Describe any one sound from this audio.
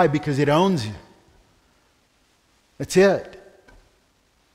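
A middle-aged man speaks with emphasis through a microphone.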